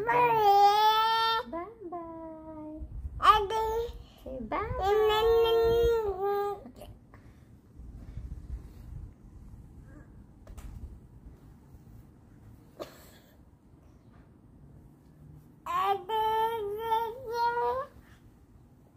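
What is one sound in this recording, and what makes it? A young woman sings in a high, sing-song voice close by.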